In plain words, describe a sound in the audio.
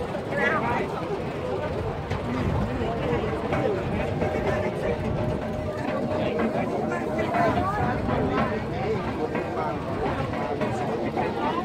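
A crowd of men and women chatter close by, outdoors.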